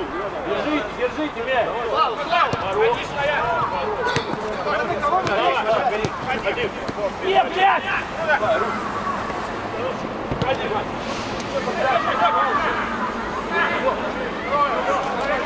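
A football is kicked with a dull thud on artificial turf.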